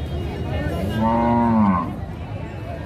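A bull lows deeply.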